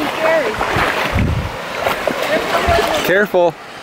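A child's hand splashes the water.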